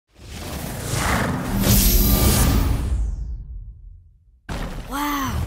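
A deep rushing whoosh swells and fades.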